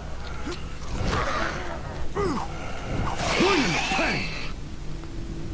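A blade slashes and thuds into flesh.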